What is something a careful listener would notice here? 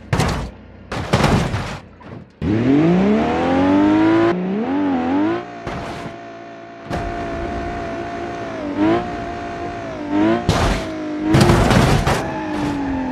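A heavy vehicle crashes with a loud bang.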